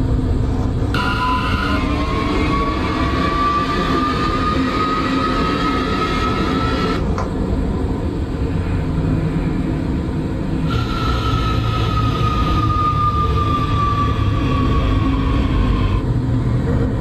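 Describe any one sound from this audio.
An electric train motor whines, rising in pitch as it speeds up and falling as it slows.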